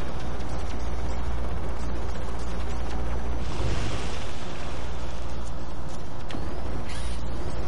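A game vehicle's engine hums steadily.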